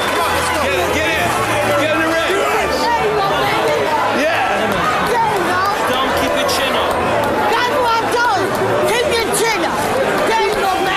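A crowd of men talk and shout excitedly all around, close by.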